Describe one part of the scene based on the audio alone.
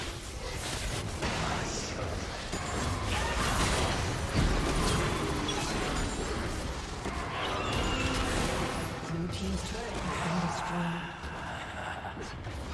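Game spell effects and attacks crackle and burst in quick succession.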